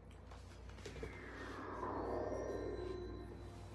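A shimmering electric whoosh sweeps downward in pitch and fades.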